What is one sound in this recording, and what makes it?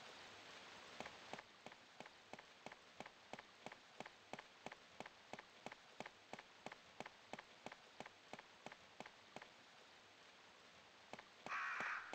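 Footsteps tap steadily on hard stone.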